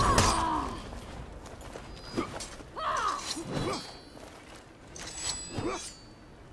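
Metal blades clash and ring in a sword fight.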